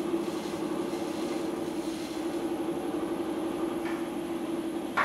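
A potter's wheel hums steadily as it spins.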